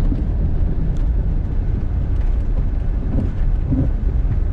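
Small bumps knock through the car body.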